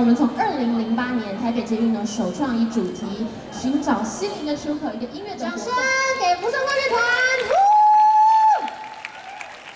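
A young woman sings loudly through a microphone over a loudspeaker.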